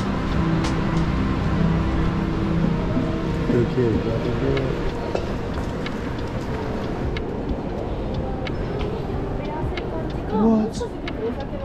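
Voices murmur in the background of a large echoing hall.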